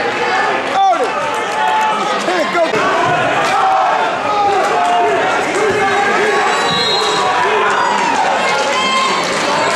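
Shoes squeak on a wrestling mat.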